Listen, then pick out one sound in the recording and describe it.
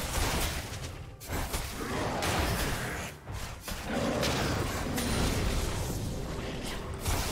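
Video game combat effects clash and crackle with magical hits.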